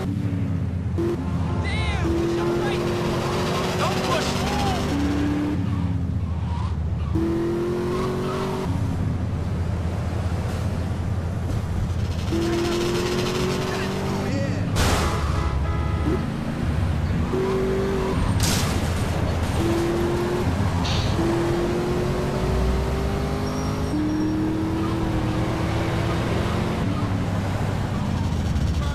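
A car engine roars steadily and shifts up through the gears.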